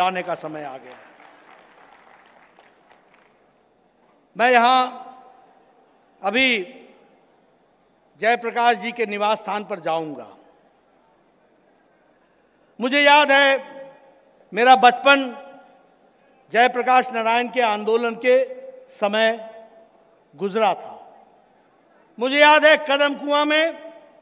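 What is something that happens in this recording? An elderly man speaks forcefully into a microphone over loudspeakers, pausing between phrases, in a reverberant hall.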